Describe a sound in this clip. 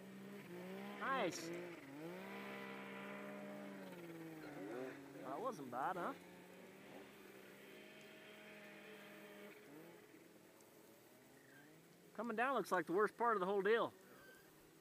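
A snowmobile engine revs up and down in quick bursts.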